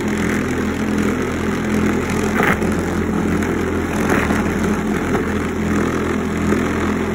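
A motor hums steadily.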